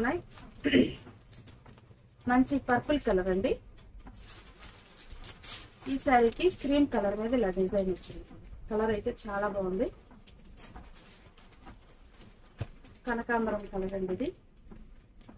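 A young woman speaks clearly and steadily into a close microphone.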